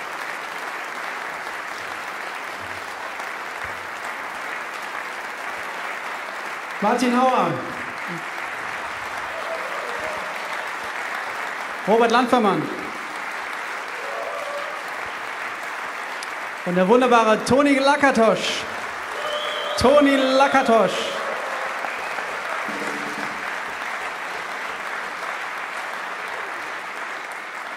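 A big band plays jazz in a large hall, with brass phrases swelling out now and then.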